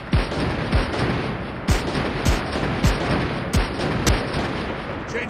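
A rifle fires sharp, booming shots in quick succession.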